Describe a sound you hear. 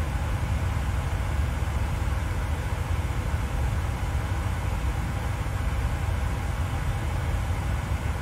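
Jet engines hum steadily with a low, constant rumble.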